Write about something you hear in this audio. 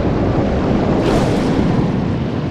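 A sword slashes through water with a whoosh.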